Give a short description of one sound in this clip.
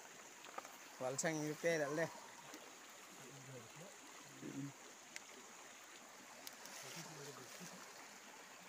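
A young man talks close by, casually.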